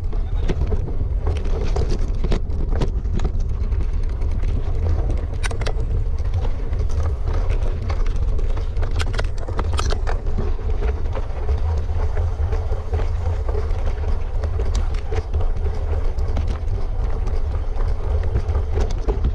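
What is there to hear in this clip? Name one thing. Wind rumbles steadily across a close microphone outdoors.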